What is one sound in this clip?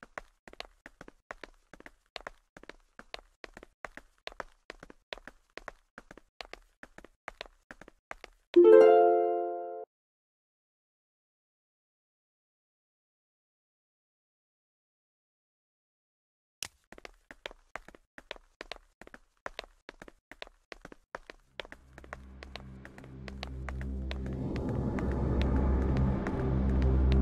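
Quick light footsteps patter on a hard surface.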